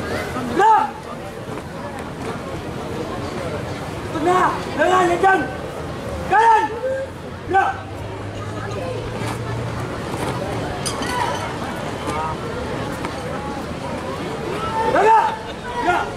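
Young people shout loudly in unison outdoors.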